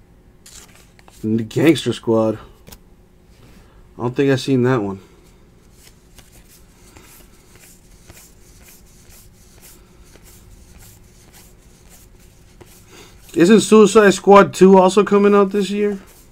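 Trading cards slide and flick softly against each other.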